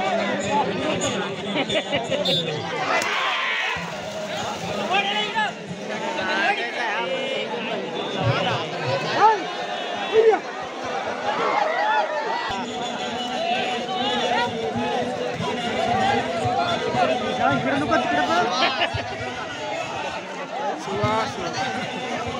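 A large outdoor crowd of men chatters and shouts all around.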